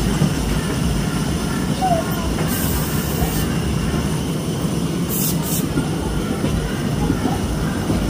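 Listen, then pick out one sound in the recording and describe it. Music from a mechanical puppet band plays.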